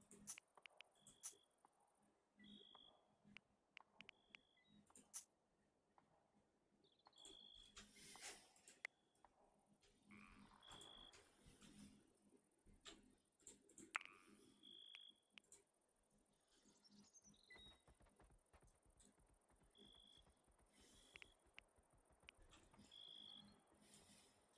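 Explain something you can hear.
Short soft blips sound as menu items are picked.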